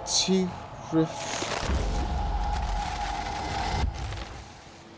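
A fire spell roars and crackles.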